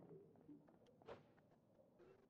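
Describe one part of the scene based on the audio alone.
A blade swings and strikes a crystal with a sharp clang.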